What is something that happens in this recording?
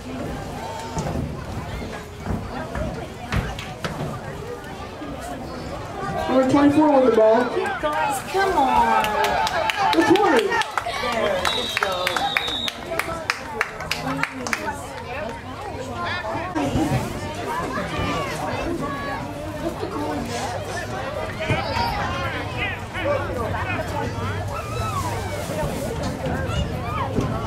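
Adults talk nearby.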